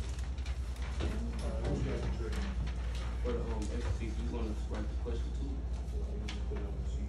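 Teenagers chatter nearby in a room.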